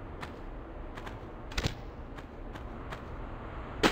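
Footsteps patter on sand.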